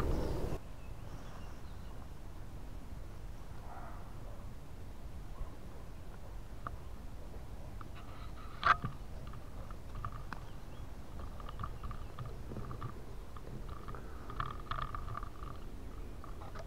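Wind rumbles against a nearby microphone outdoors.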